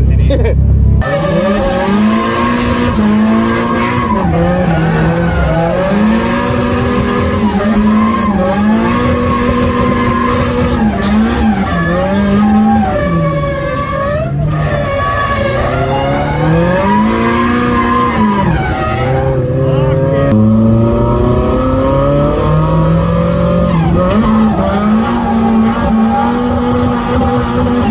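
A drift car's engine revs hard, rising and falling, heard from inside the cabin.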